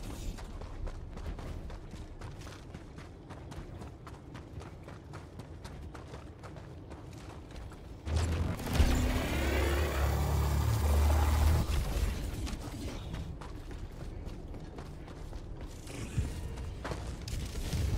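Footsteps crunch over snow and rock.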